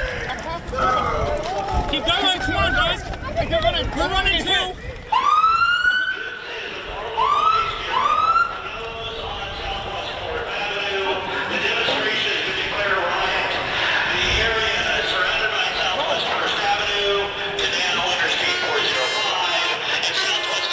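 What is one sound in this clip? A crowd of people shouts and chants nearby.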